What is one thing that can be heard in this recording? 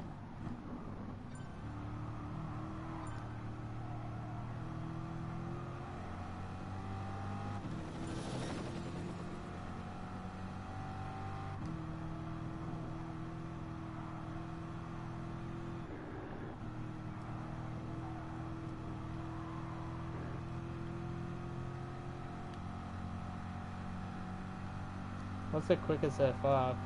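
A racing car engine roars and shifts through gears at high revs.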